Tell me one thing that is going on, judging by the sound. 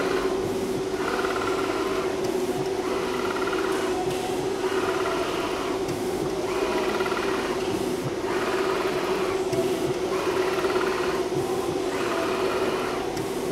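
A plotter head whirs back and forth in repeated bursts.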